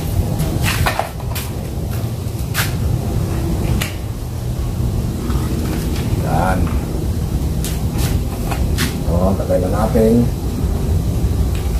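Plastic cups click and tap against a wire mesh.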